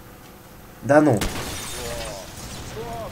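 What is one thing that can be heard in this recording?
A gunshot smashes a television's glass.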